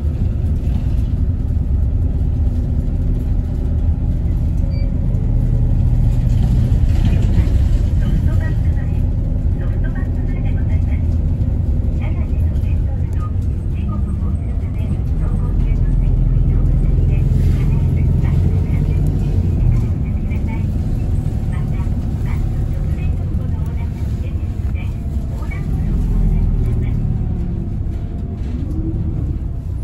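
Tyres rumble over a snowy road.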